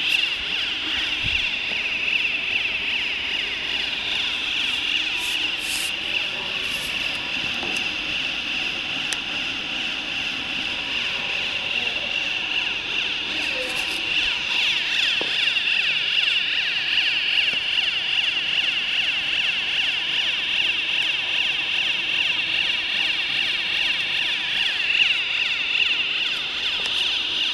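A large machine hums and whirs loudly and steadily.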